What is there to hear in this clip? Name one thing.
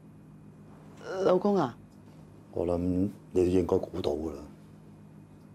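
A middle-aged woman speaks calmly and earnestly, close by.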